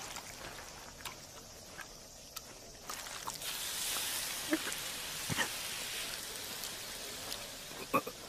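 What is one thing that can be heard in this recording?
Thick liquid drips and splashes from a ladle.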